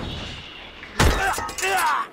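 A heavy thud sounds as a figure drops onto the ground.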